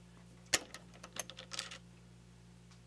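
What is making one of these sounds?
A small metal part clicks and taps against a metal chuck.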